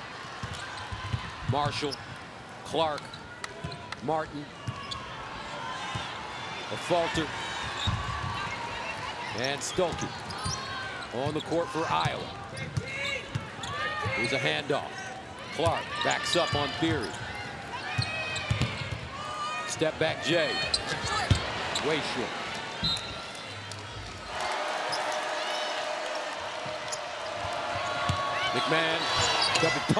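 A basketball thumps as it bounces on the court.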